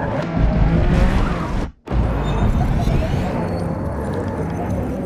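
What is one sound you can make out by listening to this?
A car engine roars loudly at high revs, briefly cutting out before roaring again.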